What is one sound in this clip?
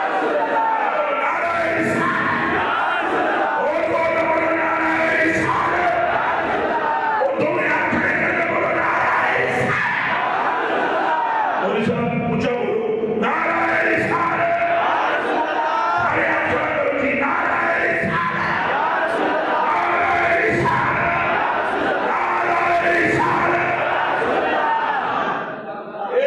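A crowd of men chants along loudly.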